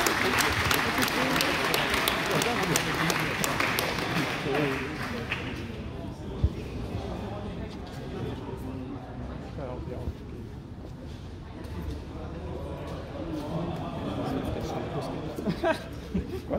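An elderly man speaks through a microphone and loudspeakers.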